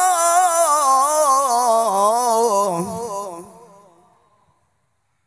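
A man sings a melodic chant through a microphone with a vibrato.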